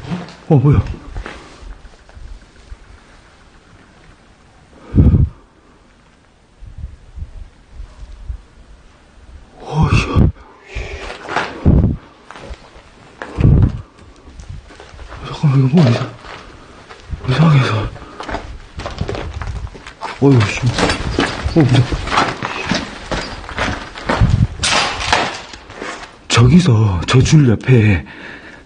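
A young man talks quietly close by.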